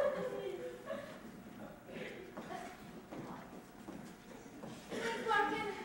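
Young performers sing together on a stage, heard from far back in a large hall.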